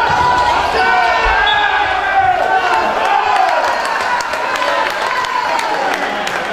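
Sneakers squeak sharply on a hard court, echoing in a large hall.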